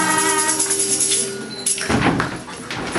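A children's choir sings together.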